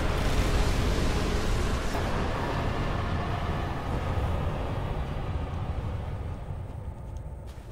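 A deep, roaring rumble slowly fades away.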